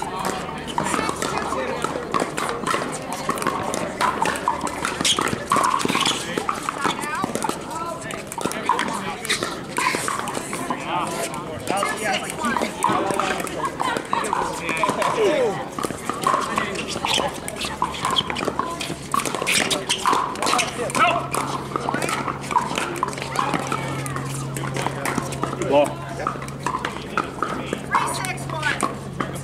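Many men and women chatter and call out across the courts outdoors.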